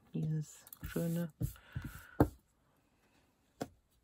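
Paper rustles as hands flatten it on a table.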